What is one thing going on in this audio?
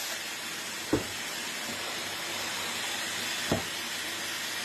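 A drill is set down on a wooden surface with a knock.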